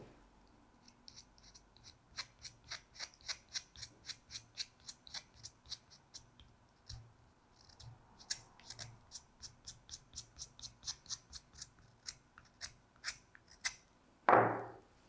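A pencil scratches rapidly across paper in short strokes.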